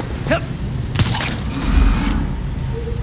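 A figure lands with a thud after a jump.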